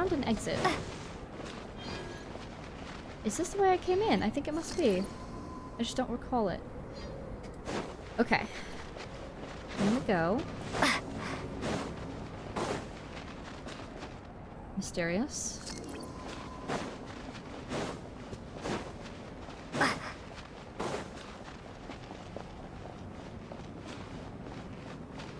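Footsteps crunch quickly over snow and stone.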